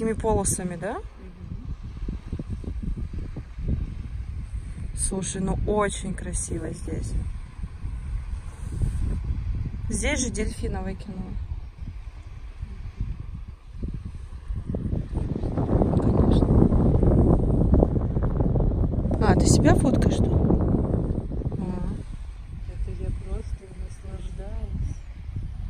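A young woman speaks calmly close to the microphone.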